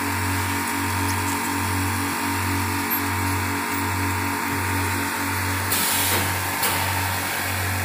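Egg trays rattle along a roller conveyor.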